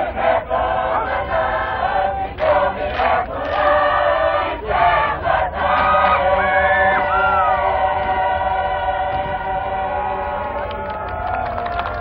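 A large group of women and men sings together outdoors.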